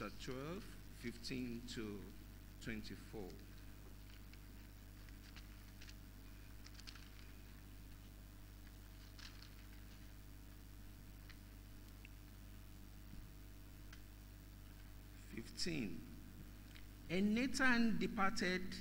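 A man speaks slowly into a microphone, heard through loudspeakers in a large room, with long pauses.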